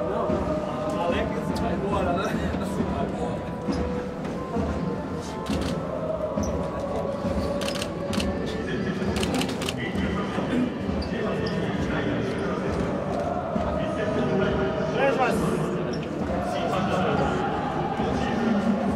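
A crowd of people chatters and murmurs in an echoing space.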